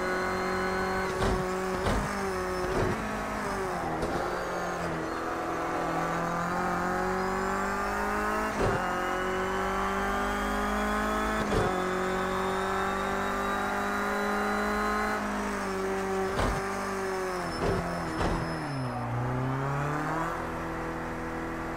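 A racing car engine roars, rising in pitch as it speeds up and dropping sharply with each gear change.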